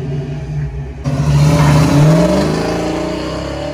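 A car engine revs up loudly and pulls away, rising in pitch.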